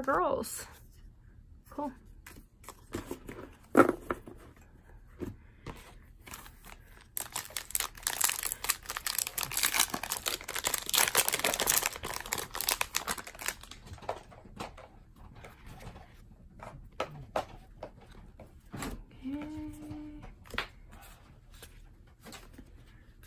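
Cards shuffle and slap softly together.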